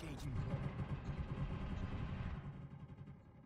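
Rapid gunfire rattles loudly and then stops.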